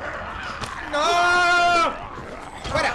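A young man yells loudly in fright.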